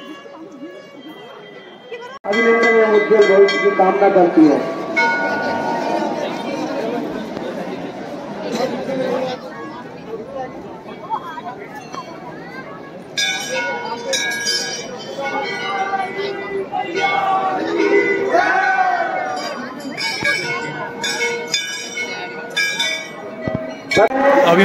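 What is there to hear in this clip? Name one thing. A crowd of men and women chatters nearby, outdoors.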